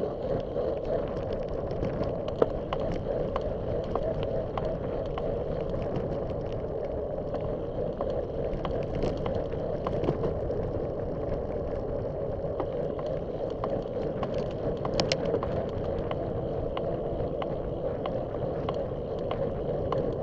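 Wind rushes steadily past the microphone outdoors.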